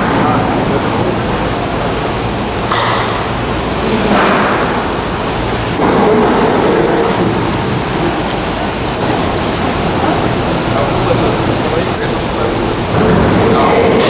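Gondola lift machinery and a large bullwheel rumble and whir.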